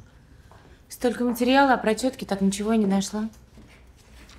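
An older woman speaks with animation nearby.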